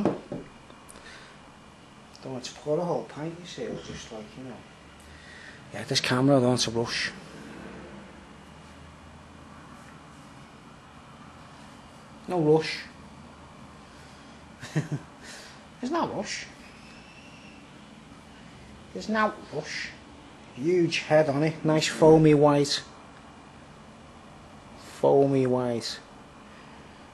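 A man talks with animation close by, in short bursts.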